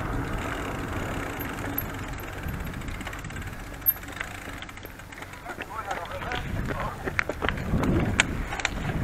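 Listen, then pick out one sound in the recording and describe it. Bicycle tyres hum on asphalt.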